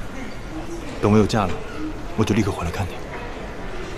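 A young man speaks softly up close.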